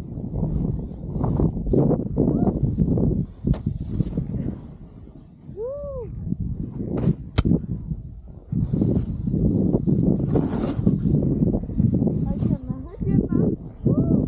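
A snowboard swishes and hisses as it carves through deep powder snow.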